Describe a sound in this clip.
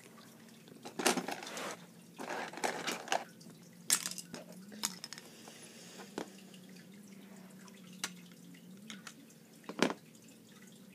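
Plastic toys knock and click against a hard surface.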